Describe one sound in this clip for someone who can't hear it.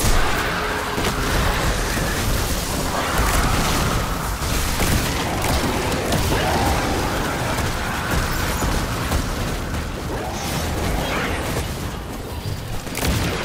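Explosions boom in a game.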